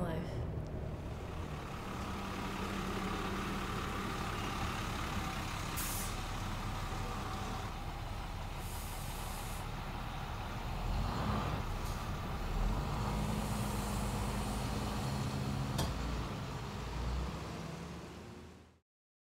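A bus engine rumbles steadily as the bus pulls in.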